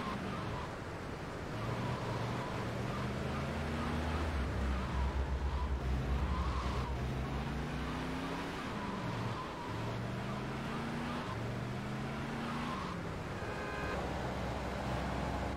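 A car engine hums and revs up through the gears.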